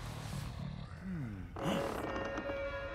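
A door creaks slowly open.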